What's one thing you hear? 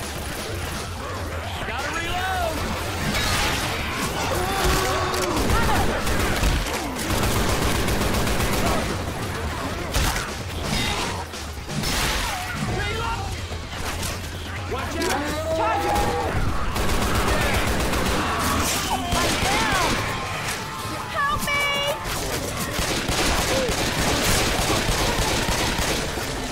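Guns fire in rapid bursts of loud shots.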